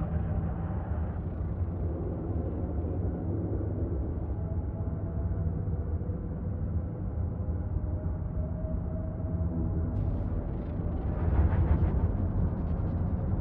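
A spacecraft engine hums with a low, steady rumble.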